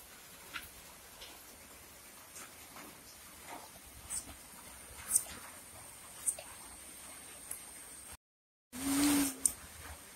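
Yarn rustles as it is wound around a bottle.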